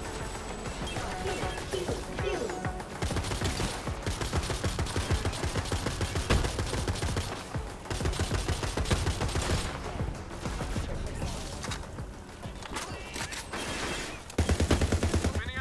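Guns fire rapid shots.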